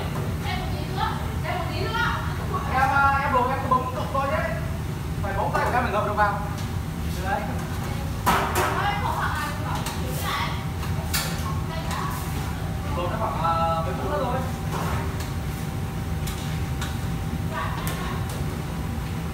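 An extractor hood rumbles steadily.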